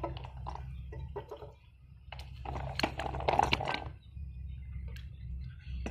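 Water sloshes as nuts are stirred in a jar.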